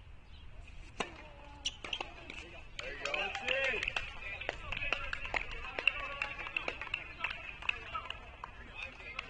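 A racket strikes a tennis ball with sharp pops.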